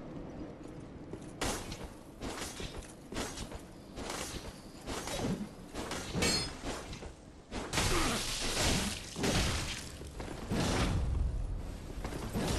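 Heavy metal armour clanks with footsteps.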